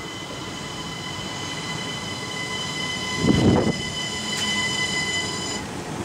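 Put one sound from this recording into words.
A train's brakes squeal with high steady tones as it slows.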